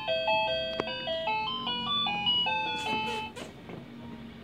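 A baby's toy plays a bright electronic tune, then stops.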